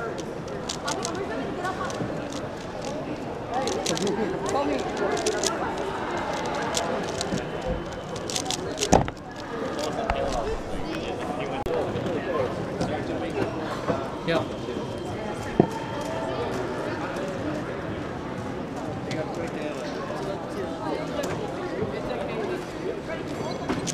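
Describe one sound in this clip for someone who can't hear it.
A crowd murmurs and chatters all around in a large echoing hall.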